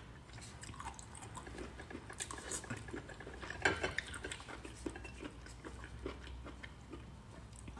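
Shellfish clatter softly against a ceramic plate.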